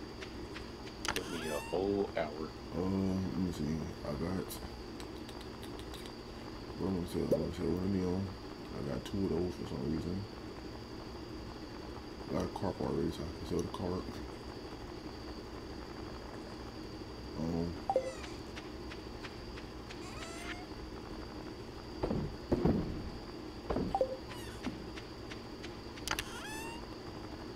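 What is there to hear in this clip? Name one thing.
Short game menu chimes and clicks sound now and then.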